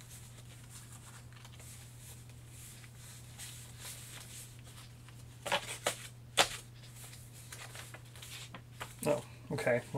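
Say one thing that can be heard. Paper cards rustle and snap as they are handled.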